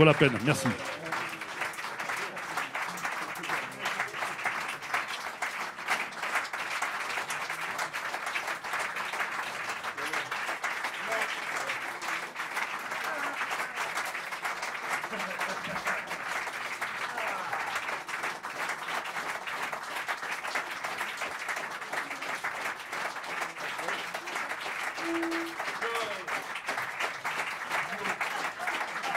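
An audience applauds steadily in a room.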